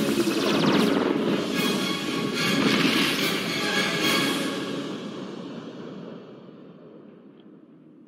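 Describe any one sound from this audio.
A powerful energy beam blasts with a loud roar that slowly fades away.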